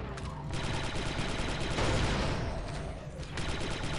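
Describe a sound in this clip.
A small explosion booms.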